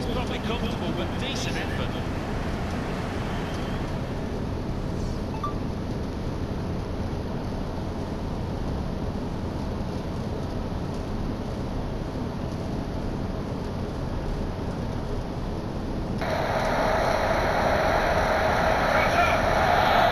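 A stadium crowd roars steadily, swelling louder toward the end.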